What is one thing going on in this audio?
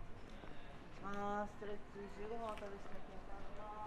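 An adult passer-by talks briefly nearby outdoors.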